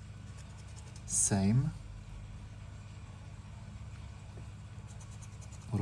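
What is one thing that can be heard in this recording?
A scratcher scrapes in short, quick rubs across a card.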